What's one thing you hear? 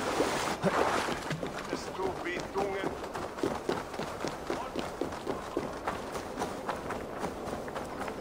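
Footsteps patter quickly on stone and earth.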